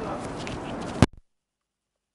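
A microphone gets knocked with a loud thump.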